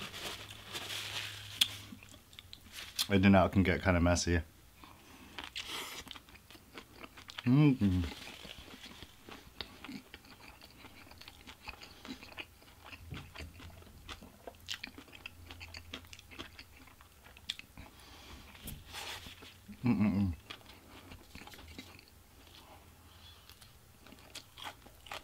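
A young man chews food noisily close by.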